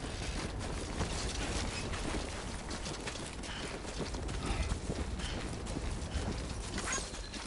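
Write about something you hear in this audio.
Footsteps crunch and thud on grassy, rocky ground.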